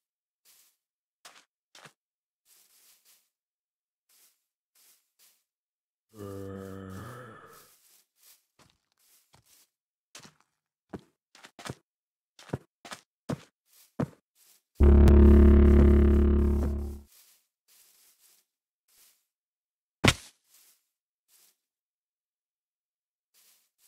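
Footsteps pad softly and steadily over grass and stone.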